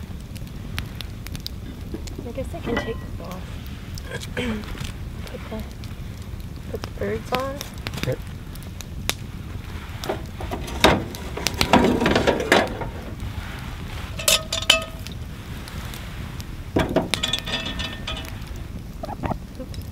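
A camp stove burner hisses steadily.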